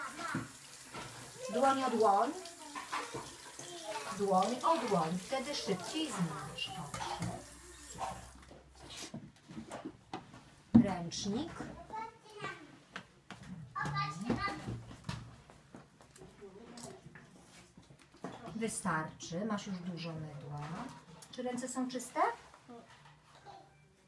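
A woman talks calmly and gently to small children nearby.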